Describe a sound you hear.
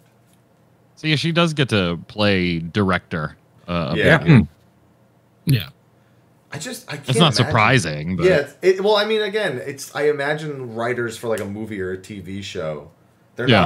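A man speaks with animation into a close microphone, heard over an online call.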